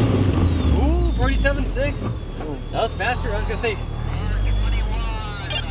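Tyres squeal on pavement through tight turns.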